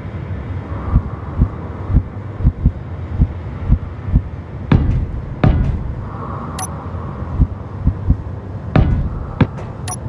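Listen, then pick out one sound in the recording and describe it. Heavy blocks thud into place in quick succession.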